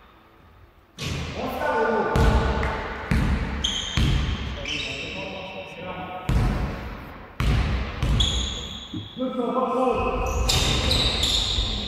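Young women call out to each other in a large echoing hall.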